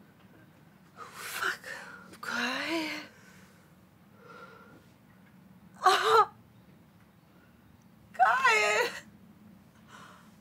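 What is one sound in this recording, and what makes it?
A young woman speaks close by in short, emotional bursts.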